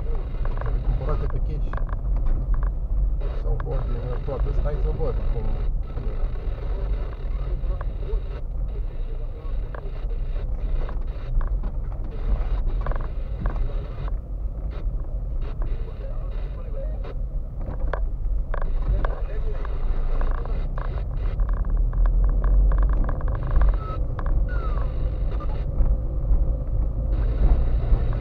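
Tyres rumble and crunch over a bumpy dirt road.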